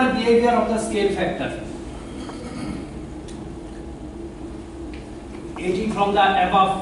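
A middle-aged man speaks calmly to an audience in a room with some echo, pausing briefly.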